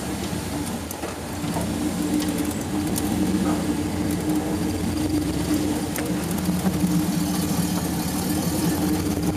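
An off-road vehicle's engine labours at low speed, climbing under load.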